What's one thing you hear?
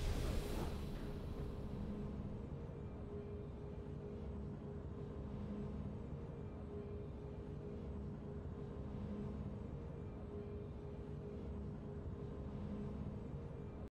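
Soft, steady game music plays after the battle.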